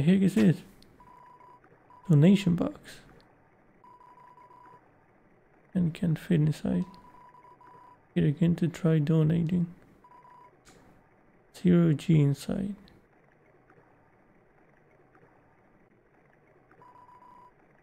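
A game's text makes a rapid run of short, even beeps.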